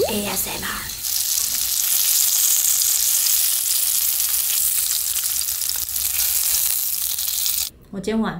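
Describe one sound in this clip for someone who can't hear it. Food sizzles and crackles in hot oil in a frying pan.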